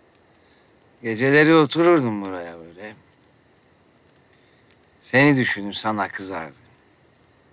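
A man speaks in a low, weary voice close by.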